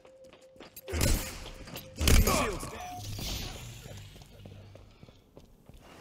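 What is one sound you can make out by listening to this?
An energy sword swings with a sharp electric whoosh.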